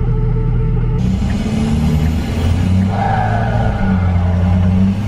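Tyres roll on a wet road as the truck drives along.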